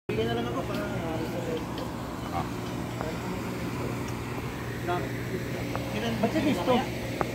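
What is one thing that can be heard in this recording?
Several men talk nearby in a group outdoors.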